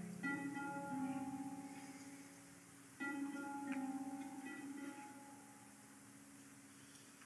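A harp plays ringing chords that slowly fade.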